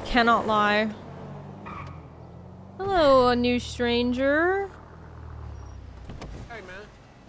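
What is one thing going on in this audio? A young woman speaks with animation into a close microphone, drawing out her words.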